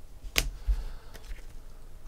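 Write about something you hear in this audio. A hand handles a plastic card pack with light clicks and rustles.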